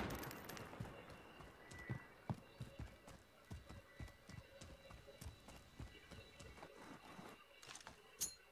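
A rifle fires in rapid bursts in a video game.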